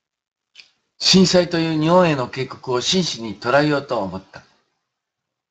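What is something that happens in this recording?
An elderly man speaks calmly and close up.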